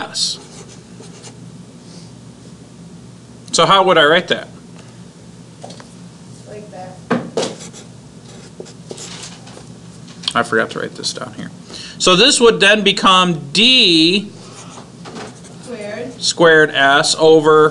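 A marker squeaks and scratches across paper.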